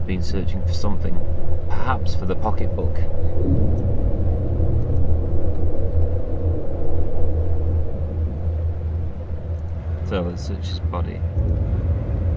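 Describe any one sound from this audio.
A young man speaks casually and close into a microphone.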